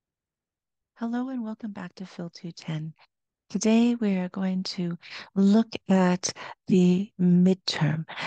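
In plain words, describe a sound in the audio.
A woman speaks calmly through a headset microphone over an online call.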